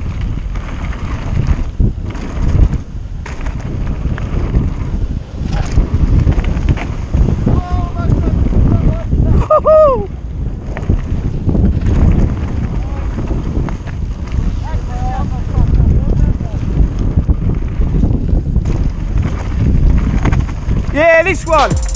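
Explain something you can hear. Bicycle tyres crunch and rattle over a dirt track.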